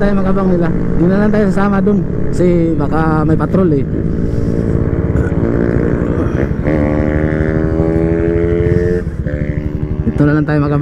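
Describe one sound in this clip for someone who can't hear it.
A motorcycle engine revs hard and rises in pitch as it shifts through the gears.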